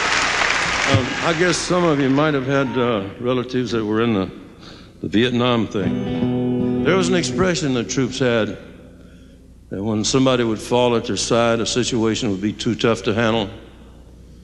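An elderly man speaks slowly into a microphone.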